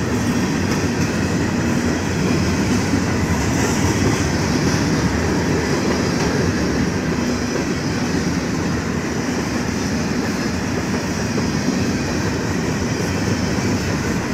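A crossing bell rings steadily.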